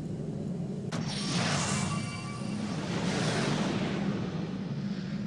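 A rushing magical whoosh swells and fades.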